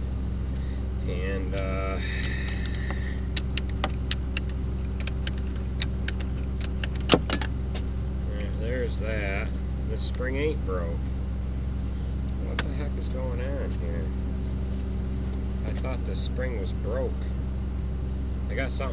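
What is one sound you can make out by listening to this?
A man speaks close by in short, calm phrases.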